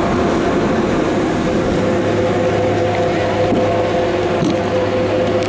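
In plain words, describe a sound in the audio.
A chairlift's machinery hums steadily.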